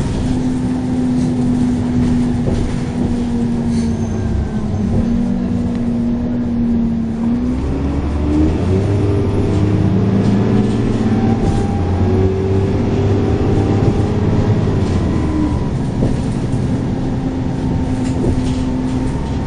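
A bus interior rattles and vibrates as it drives.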